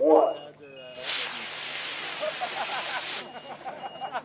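A model rocket launches with a sharp hissing whoosh.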